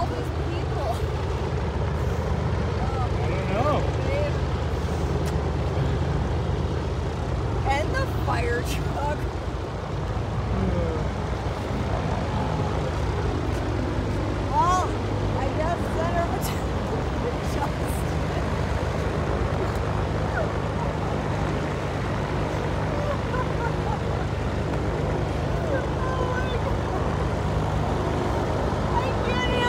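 Small propeller planes drone in the distance as they taxi.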